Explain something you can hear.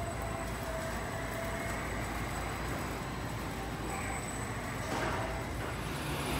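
An electric forklift hums as it drives past.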